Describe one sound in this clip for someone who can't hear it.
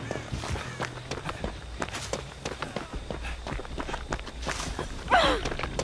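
Quick footsteps run over dry ground.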